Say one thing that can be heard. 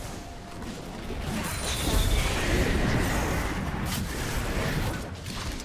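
Video game spells whoosh and crackle during a fight.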